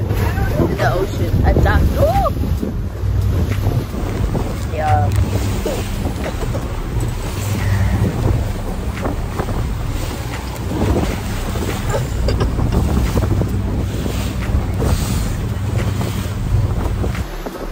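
A young woman talks and laughs close to a phone microphone.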